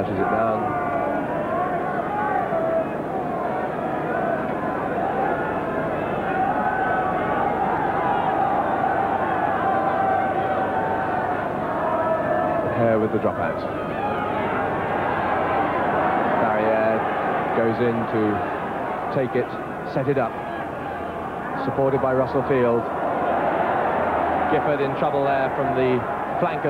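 A large stadium crowd roars.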